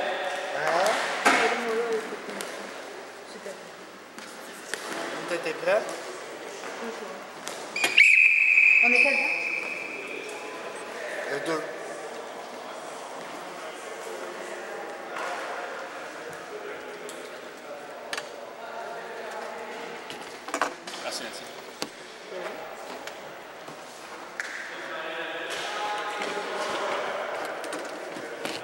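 Men talk casually in a large echoing gym.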